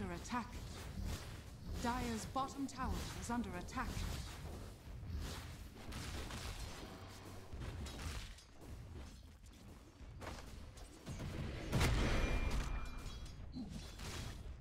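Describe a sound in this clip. Magical blasts and weapon clashes crackle in a fast video game battle.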